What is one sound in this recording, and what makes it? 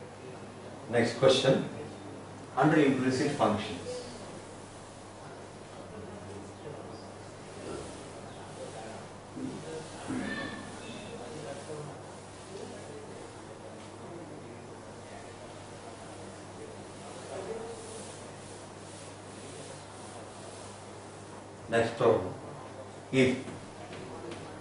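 A middle-aged man speaks in short bursts, close by in a room with some echo.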